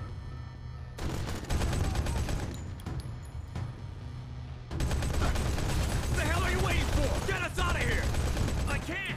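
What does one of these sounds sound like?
A heavy machine gun fires in long rapid bursts.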